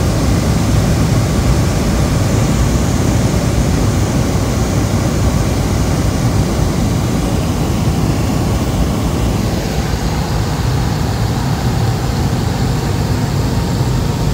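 A single-engine light aircraft's engine drones, heard from inside the cabin.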